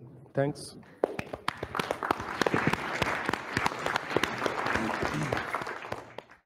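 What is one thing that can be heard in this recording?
A crowd applauds, heard through an online call.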